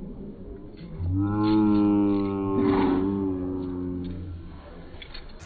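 A young man groans loudly in pain, close by.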